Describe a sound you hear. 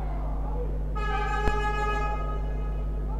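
A referee's whistle blows with a long, shrill blast.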